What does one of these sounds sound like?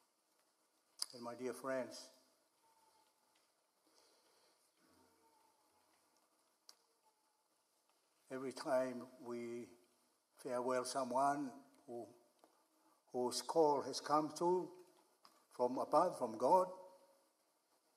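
An elderly man speaks slowly through a microphone in a large echoing room, with long pauses.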